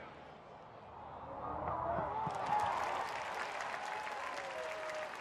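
A large crowd cheers and roars in an open stadium.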